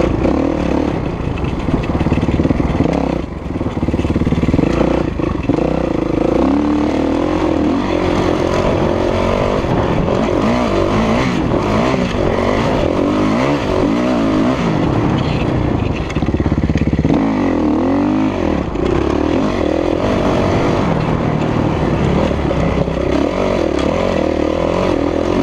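A four-stroke dirt bike engine revs up and down under hard acceleration.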